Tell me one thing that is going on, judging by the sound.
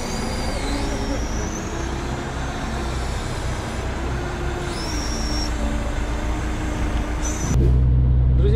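A hydraulic crane whines and groans as it lifts logs.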